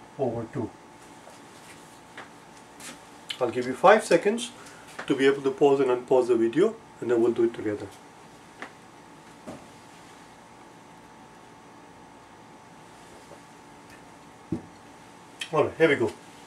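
A middle-aged man speaks calmly and clearly, close by.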